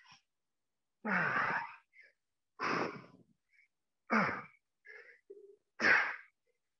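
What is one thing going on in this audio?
A middle-aged man exhales sharply in regular breaths.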